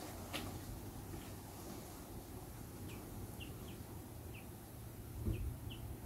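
A small bird chirps in short, high calls among leaves.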